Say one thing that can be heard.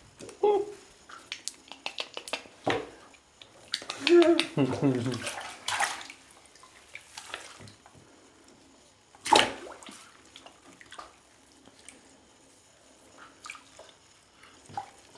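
Bath water splashes and sloshes.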